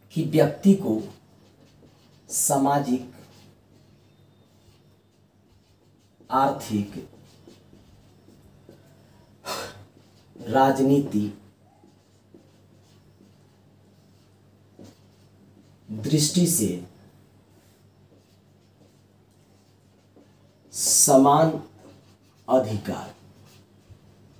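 A middle-aged man speaks calmly in short phrases, close by, with pauses between them.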